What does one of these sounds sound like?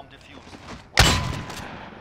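A gun fires a loud shot that echoes.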